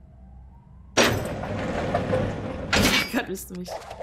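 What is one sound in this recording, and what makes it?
A heavy metal cell door rattles and slides open.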